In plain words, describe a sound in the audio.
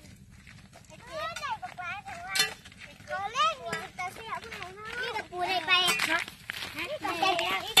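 Young children talk and call out excitedly close by.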